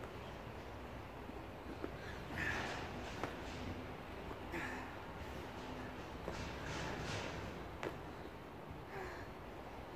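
Feet land with dull thuds on rubber flooring during burpee jumps.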